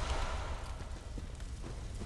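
A blade swings through the air with a whoosh.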